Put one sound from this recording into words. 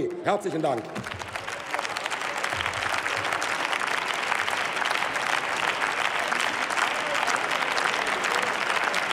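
A large crowd applauds in a large echoing hall.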